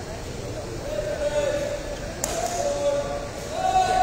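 Young men call out and shout in an open hall.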